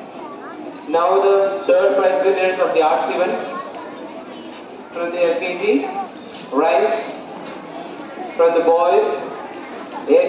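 A woman speaks loudly through a loudspeaker in short bursts.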